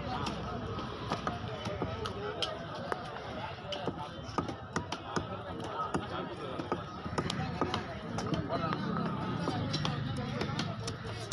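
A large knife chops and taps against a wooden block.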